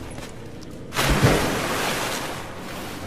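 A body plunges into water with a loud splash.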